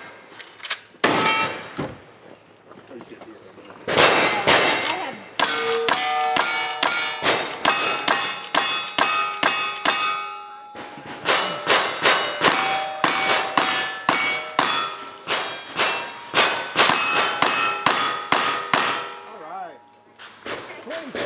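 A rifle fires loud shots in rapid succession outdoors.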